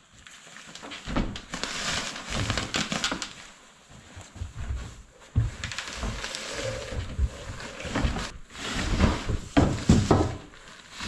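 Plastic wrapping rustles and crinkles close by.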